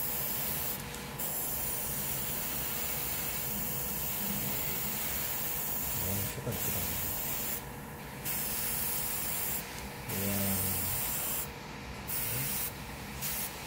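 An airbrush hisses steadily, with short pauses.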